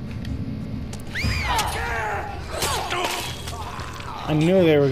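A man shrieks and snarls close by.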